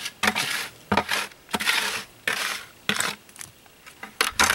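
Water splashes as it is poured from a bucket into a hole in the ground.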